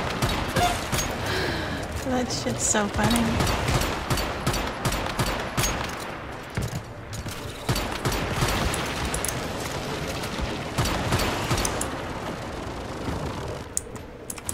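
A weapon fires in rapid bursts with loud blasts.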